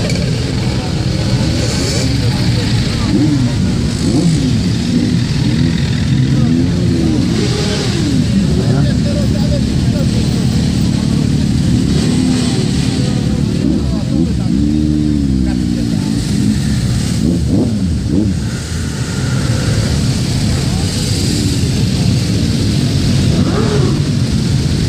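Many motorcycle engines idle and rumble close by.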